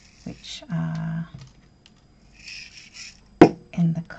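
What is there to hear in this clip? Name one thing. Tiny plastic gems tap and clatter onto a table.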